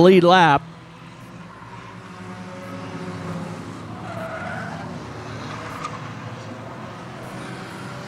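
Race car engines roar and drone around a track.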